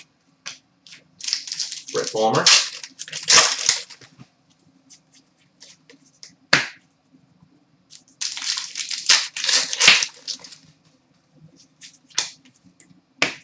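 Trading cards rustle and slide as hands sort through them.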